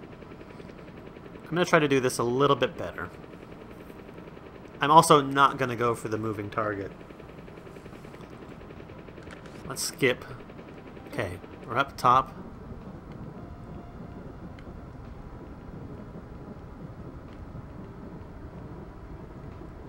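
A game helicopter's engine drones steadily.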